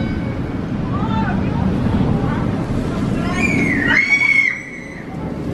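Riders on a roller coaster scream.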